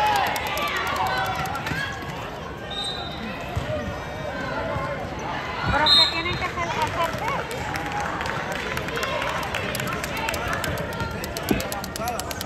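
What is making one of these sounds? Players shout and call out to each other in a large echoing gym.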